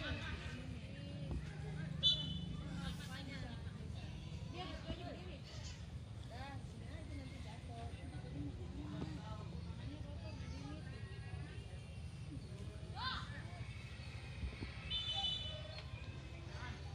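Young men shout to each other across an outdoor football field, far off.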